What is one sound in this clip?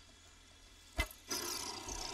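An arrow thuds into a creature.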